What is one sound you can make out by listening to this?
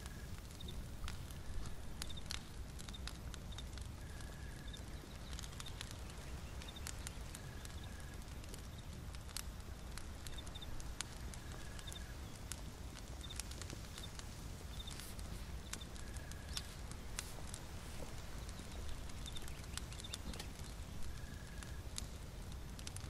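A small fire crackles softly and pops now and then.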